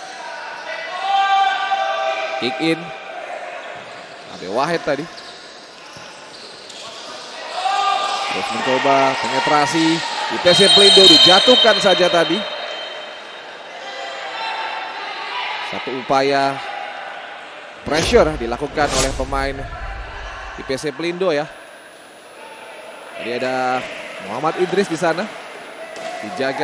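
Sneakers squeak sharply on a hard indoor court.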